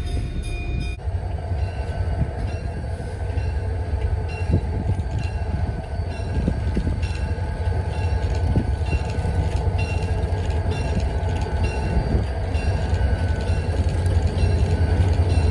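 A diesel locomotive approaches with a deep engine rumble.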